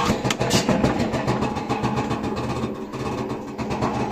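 A washing machine door swings shut with a thud.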